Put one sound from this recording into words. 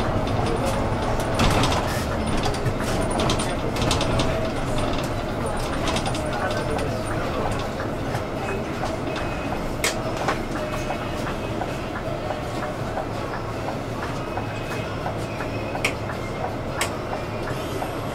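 The inside of a bus rattles and clicks as it rolls along.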